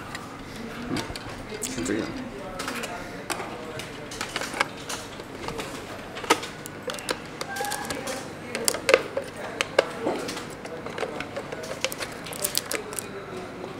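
Plastic parts click and tap as hands handle a device.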